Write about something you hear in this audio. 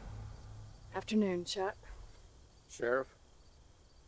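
A woman speaks quietly and calmly nearby.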